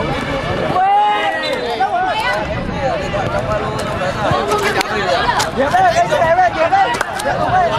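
A crowd of spectators talks and shouts close by.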